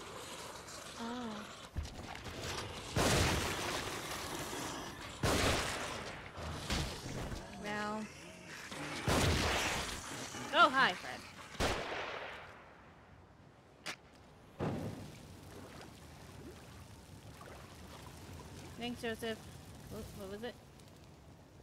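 A young woman talks quietly into a headset microphone.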